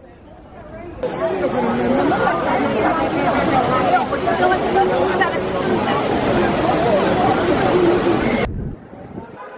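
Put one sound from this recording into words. Water splashes and gushes from a large fountain.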